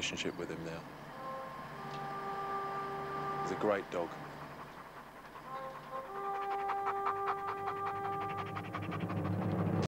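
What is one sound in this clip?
A dog pants heavily.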